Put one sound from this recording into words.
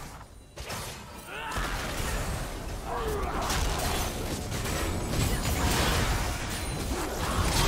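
Blows and hits thud rapidly.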